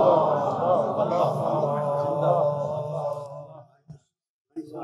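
An elderly man chants in a slow, melodic voice through a microphone.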